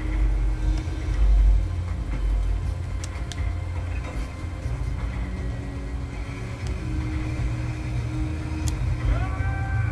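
Buttons on a game controller click.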